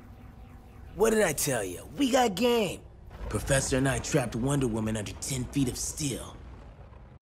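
A young man speaks calmly and menacingly.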